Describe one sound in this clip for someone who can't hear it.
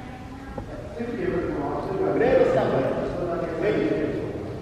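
A man talks nearby in a large echoing hall.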